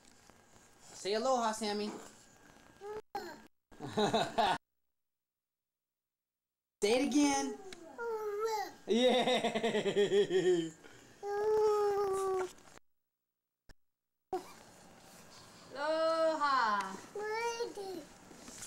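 A toddler babbles and coos close by.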